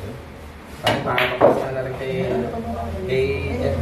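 Pool balls knock together and roll across the table.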